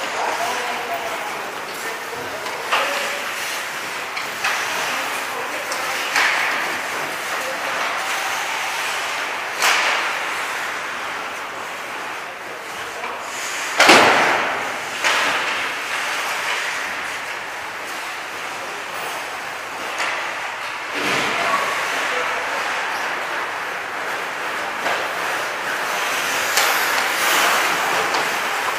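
Skates scrape and swish across the ice.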